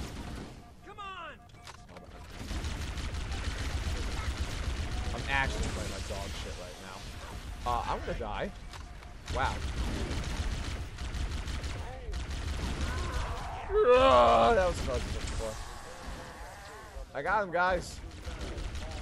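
Alien creatures screech and chatter.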